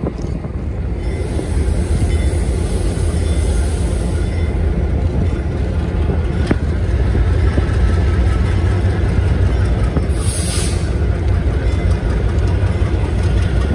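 A diesel locomotive engine roars loudly as it approaches and pulls away.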